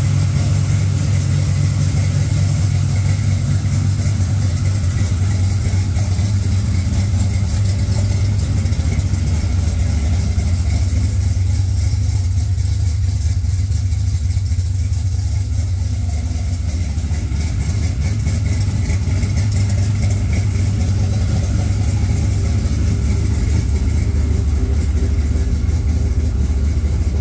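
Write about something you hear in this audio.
A car engine idles with a deep, steady rumble close by.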